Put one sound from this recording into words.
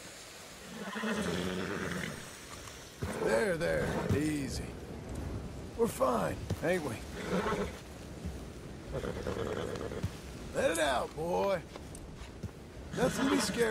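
A man speaks calmly to a horse.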